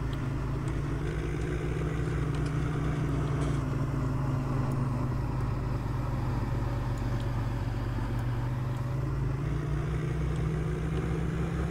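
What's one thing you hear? Hydraulics whine as a loader arm moves.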